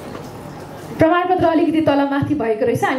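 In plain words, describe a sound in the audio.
A middle-aged man speaks through a microphone over a loudspeaker in a large hall.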